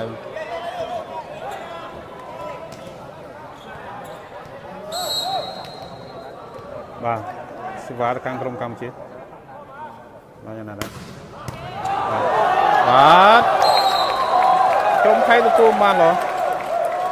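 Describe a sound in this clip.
A large crowd chatters in an echoing hall.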